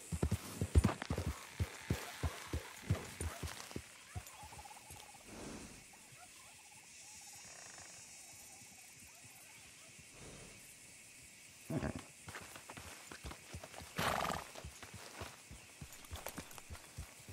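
Horse hooves thud on soft ground at a walk.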